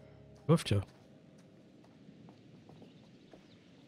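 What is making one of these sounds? Footsteps crunch softly over dry leaves and stone.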